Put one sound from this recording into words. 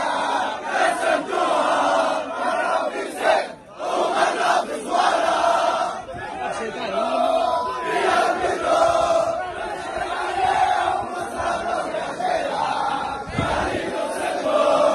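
A large crowd of young men chants and sings loudly in unison outdoors.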